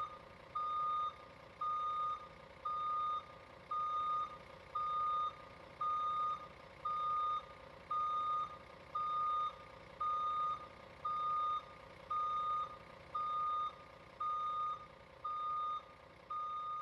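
A bus engine idles steadily nearby.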